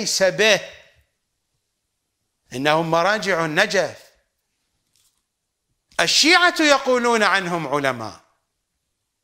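An older man speaks emphatically into a close microphone, in short bursts with pauses.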